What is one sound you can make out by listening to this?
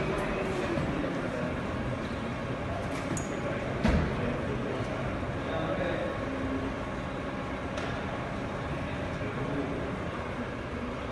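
A bus engine idles steadily nearby.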